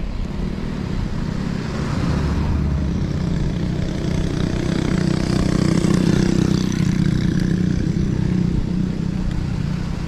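A pickup truck's engine hums steadily close ahead.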